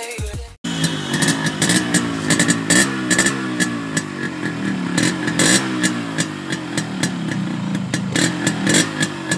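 A motorcycle engine idles close by with a loud, uneven popping exhaust.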